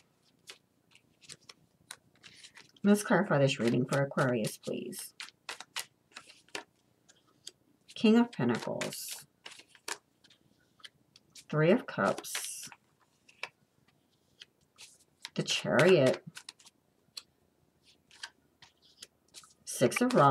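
Playing cards are laid down softly on a cloth surface.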